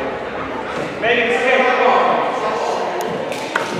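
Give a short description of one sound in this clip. Young girls shout and cheer in a large echoing gym.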